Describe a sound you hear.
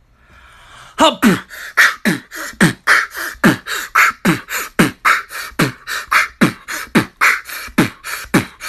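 A young man sneezes loudly over and over.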